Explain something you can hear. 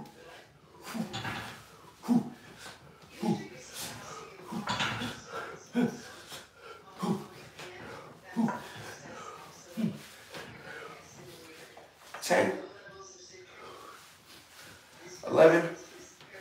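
A man exhales forcefully and grunts with each pull-up, close by.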